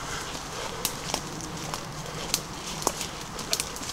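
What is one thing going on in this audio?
Leafy branches brush and rustle.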